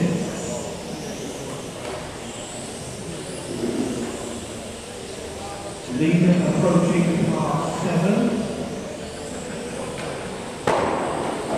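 A crowd of spectators murmurs in an echoing hall.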